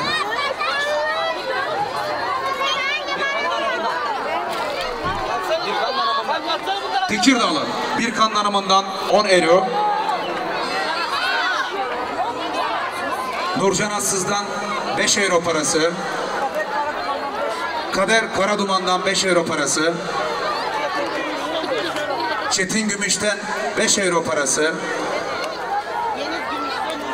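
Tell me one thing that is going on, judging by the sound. Many women chatter close by in a crowd.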